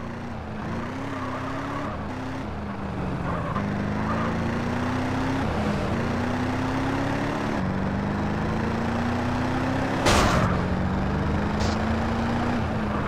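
A car engine revs steadily, rising in pitch and dropping back with each gear change.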